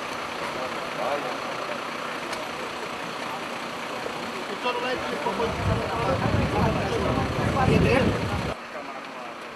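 A crowd of people talks outdoors in the background.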